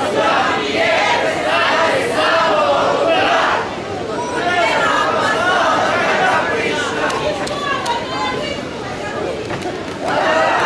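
A group of young people chants in unison from stadium stands outdoors.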